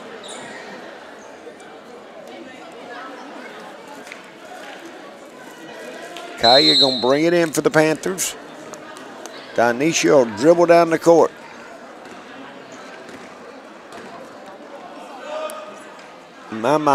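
A crowd murmurs in a large echoing gym.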